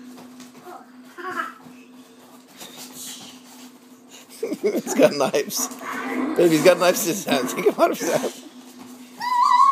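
Two young boys laugh and squeal while playing.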